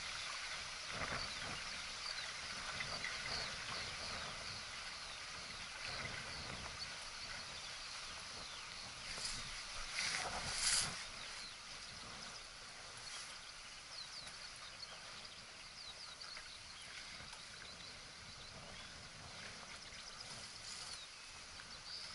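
Water splashes and rushes along a boat's hull.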